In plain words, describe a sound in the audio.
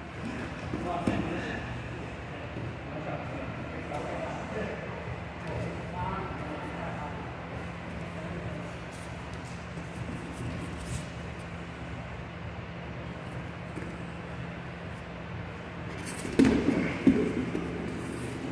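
Two men grapple and shuffle their feet on a padded mat.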